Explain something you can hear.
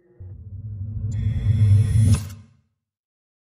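A clock mechanism whirs and rattles loudly, building up.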